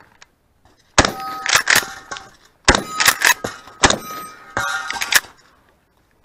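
A shotgun fires loud shots outdoors.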